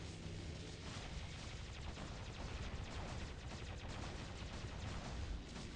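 Rapid gunfire rattles and blasts.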